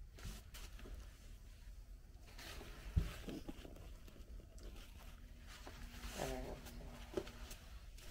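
Hair rustles against the microphone.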